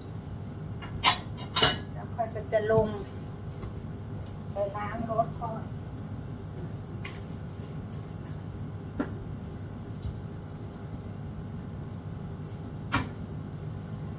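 Kitchen items knock on a countertop.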